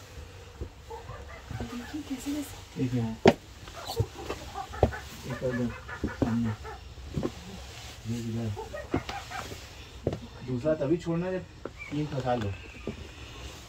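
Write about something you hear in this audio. A man talks in short bursts close by.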